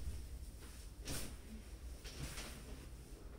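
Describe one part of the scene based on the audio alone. A wooden chair creaks as a man sits down.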